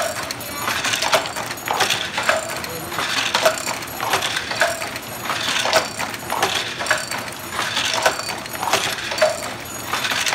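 A wooden handloom clacks and thumps in a rhythm as its beater is pulled against the weave.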